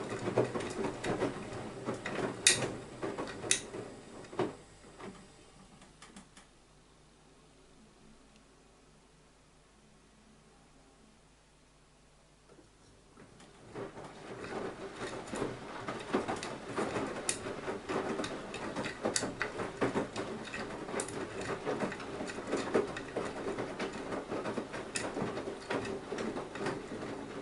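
A washing machine drum turns, sloshing water and wet laundry.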